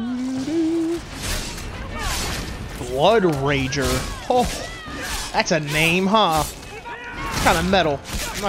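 Metal blades clang as fighters strike each other.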